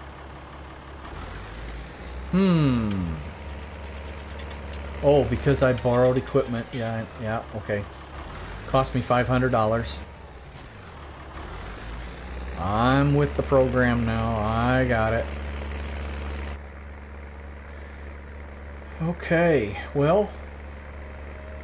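A diesel tractor engine hums as the tractor drives.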